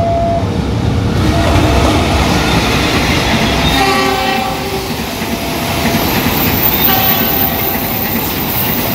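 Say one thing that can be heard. A diesel-hauled passenger train rumbles past.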